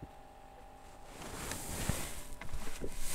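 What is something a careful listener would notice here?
Clothing rustles and brushes right against the microphone.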